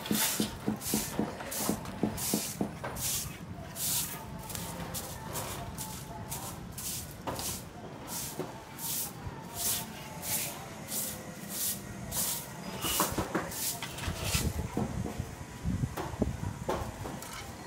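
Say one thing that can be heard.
A trowel scrapes rhythmically across wet concrete.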